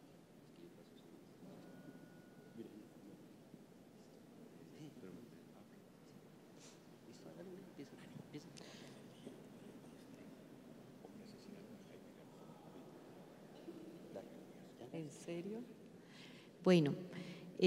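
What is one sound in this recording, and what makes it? Men and women chat quietly in a large echoing hall.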